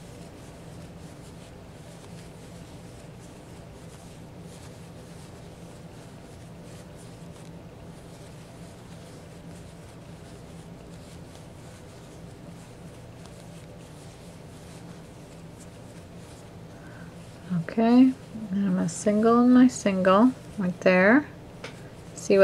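A crochet hook pulls yarn through stitches with a soft rustle.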